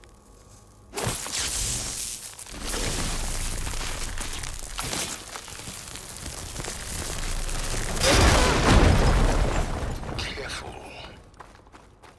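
A fire hisses and roars.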